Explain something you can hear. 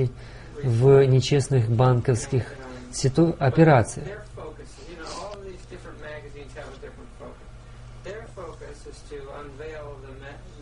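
An elderly man speaks calmly and closely into a microphone.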